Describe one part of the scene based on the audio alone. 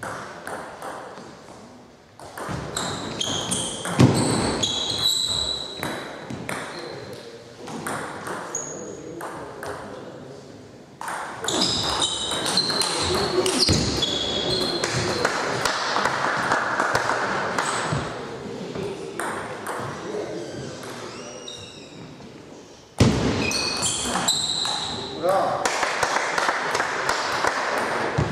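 A table tennis ball clicks back and forth on paddles and a table in an echoing hall.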